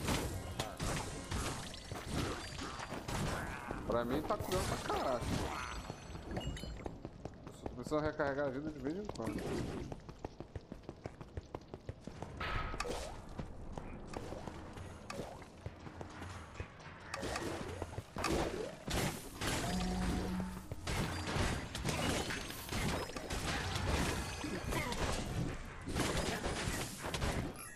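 Weapons clash and magic blasts crackle rapidly in a game fight.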